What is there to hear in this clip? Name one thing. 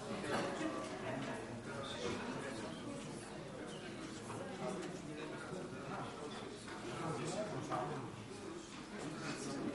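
Several men talk over one another in a large echoing hall.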